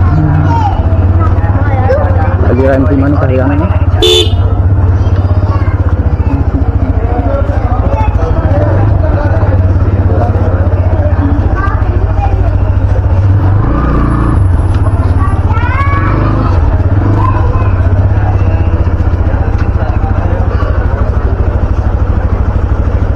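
Men's voices chatter in a busy street.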